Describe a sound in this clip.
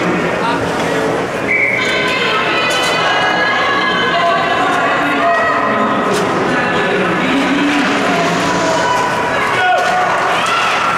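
A crowd of spectators shouts and cheers in a large echoing rink.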